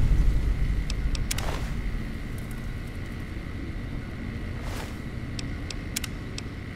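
Short menu clicks and beeps sound now and then.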